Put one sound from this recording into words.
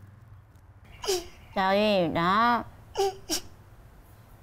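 A younger woman speaks with surprise nearby.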